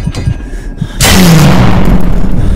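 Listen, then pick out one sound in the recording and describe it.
A mechanical creature lets out a sudden, loud, harsh screech.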